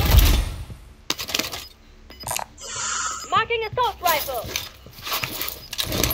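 Metal gear clicks and rattles as a weapon is handled.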